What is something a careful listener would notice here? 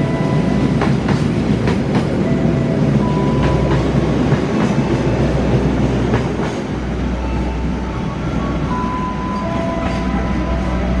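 Train wheels click and clack over rail joints.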